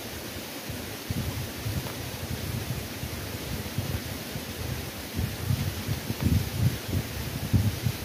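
Leaves rustle close by.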